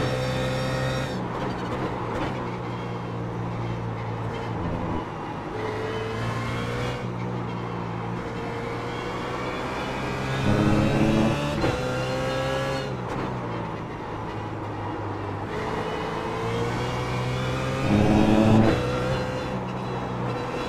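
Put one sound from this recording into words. A race car engine roars, rising in pitch through each gear and dropping sharply at every shift.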